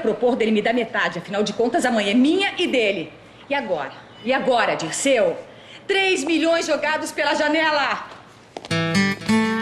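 A woman speaks firmly, close by.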